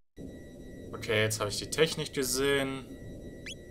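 Swirling electronic game sound effects warble loudly.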